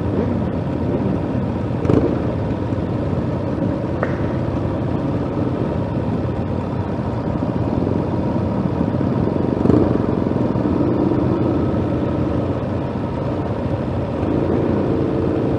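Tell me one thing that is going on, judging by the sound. Several motorcycle engines idle and rumble close by.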